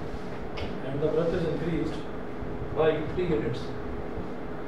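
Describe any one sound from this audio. A man speaks briefly in a calm voice.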